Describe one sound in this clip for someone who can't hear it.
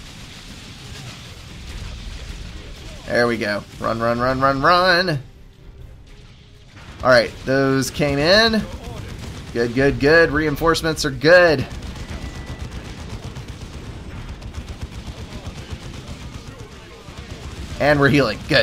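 Gunfire crackles and rattles in a battle.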